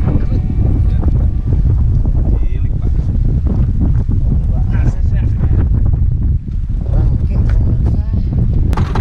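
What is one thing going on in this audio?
Waves slap against the side of a small boat.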